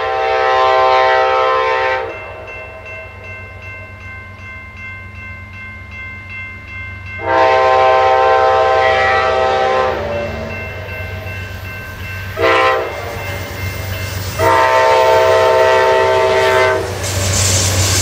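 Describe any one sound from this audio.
A train horn blasts loudly in long and short bursts.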